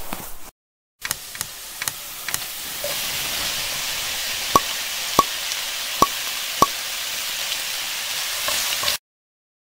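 Dice and glass pebbles clatter and knock in a metal pan.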